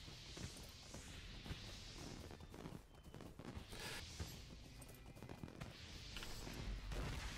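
A horse's hooves thud steadily in a gallop.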